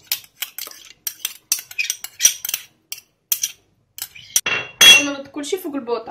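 A metal spoon clinks against a metal pot.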